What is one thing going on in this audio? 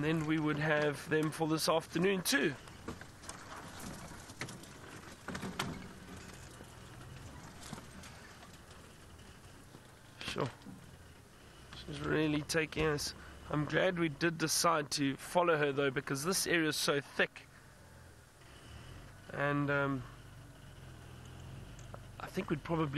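A man talks calmly nearby, in pauses.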